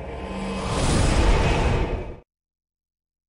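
Rocks crash down with a loud, rumbling roar, then stop abruptly.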